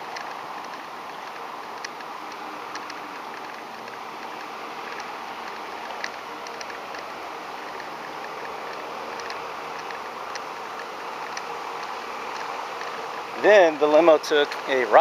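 Bicycle tyres hum on the road.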